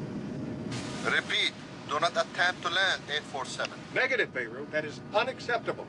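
A man speaks into a radio microphone in short bursts.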